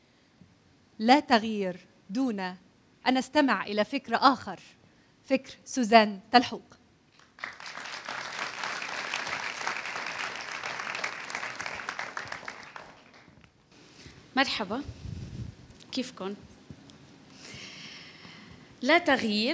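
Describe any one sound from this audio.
A woman speaks clearly and warmly into a microphone.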